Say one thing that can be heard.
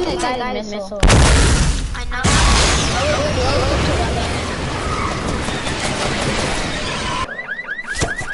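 A rocket roars loudly as it flies.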